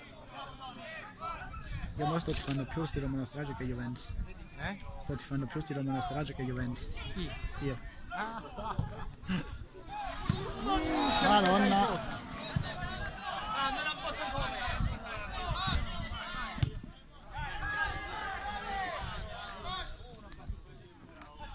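Men shout and call out across an outdoor football pitch.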